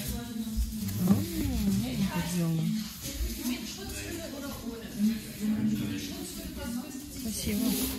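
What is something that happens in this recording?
Stiff paper pages rustle as a book is leafed through.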